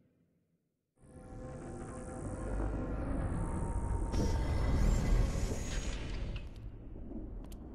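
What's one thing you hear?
A heavy stone door rumbles and grinds open.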